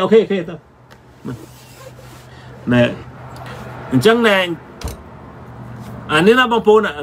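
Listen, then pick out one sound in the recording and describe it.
A middle-aged man speaks with animation, close by, in short bursts with pauses.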